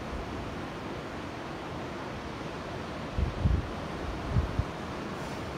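Wind blows outdoors and buffets the microphone in short gusts.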